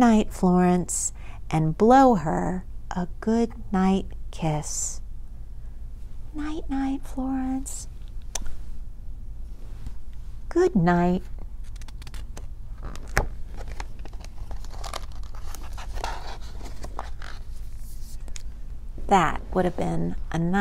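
A woman reads a story aloud with expression, close to a microphone.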